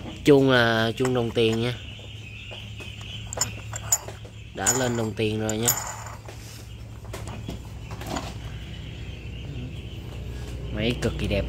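Fingers rub and tap against a chainsaw's plastic housing.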